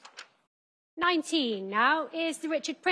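A woman auctioneer speaks with animation into a microphone, calling bids.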